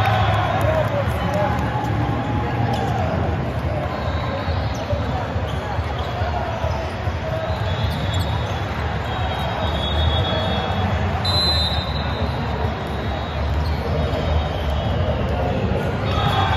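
Many people talk in a large echoing hall.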